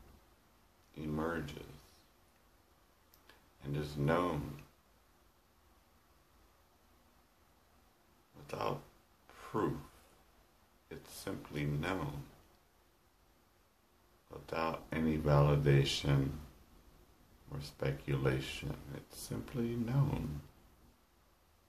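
A man speaks calmly and slowly, close by, with long pauses.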